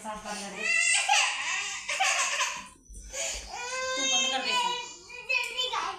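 A small child giggles and squeals with laughter.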